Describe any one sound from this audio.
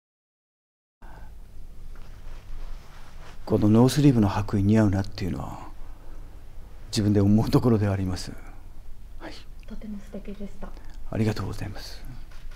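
A young man speaks calmly and warmly close to a microphone.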